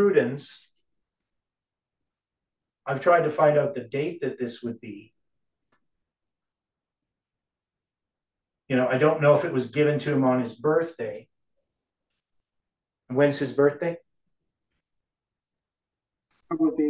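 An older man speaks calmly and close by, pausing between phrases.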